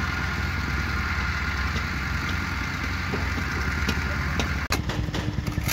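A bulldozer engine rumbles and clatters nearby.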